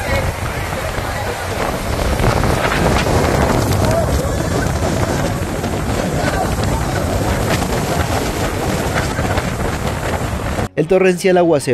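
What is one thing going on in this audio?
Strong wind roars and rain lashes down outdoors.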